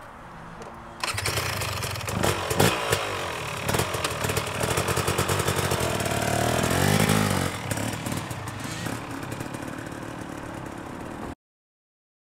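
A dirt bike engine starts and runs with a loud, rattling idle.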